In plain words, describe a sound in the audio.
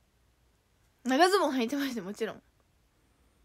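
A young woman speaks brightly and close up.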